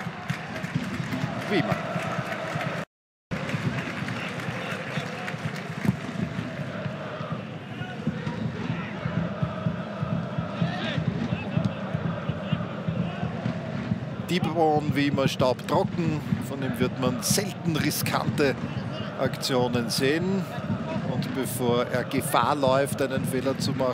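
A stadium crowd murmurs and cheers steadily outdoors.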